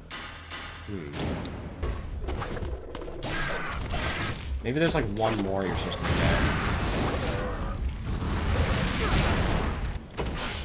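Blades clash and slash rapidly in a video game fight.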